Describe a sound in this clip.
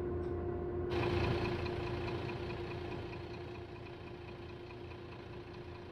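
A turn signal ticks.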